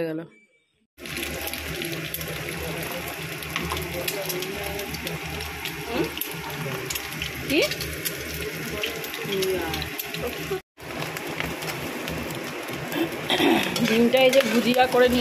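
Oil sizzles and crackles around a frying egg.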